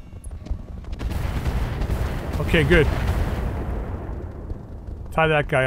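An explosion booms and rumbles away.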